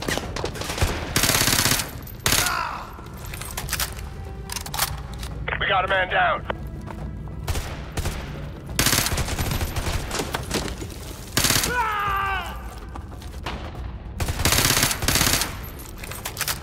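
A rifle fires loud bursts of shots that echo around.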